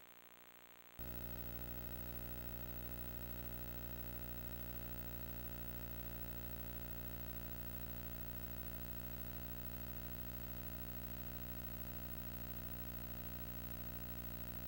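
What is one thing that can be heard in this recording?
A low steady drone hums on.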